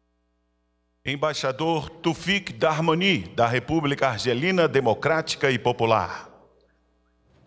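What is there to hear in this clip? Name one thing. A man announces clearly over a loudspeaker in an echoing hall.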